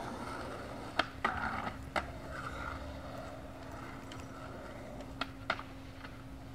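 Skateboards clack and snap sharply against the ground.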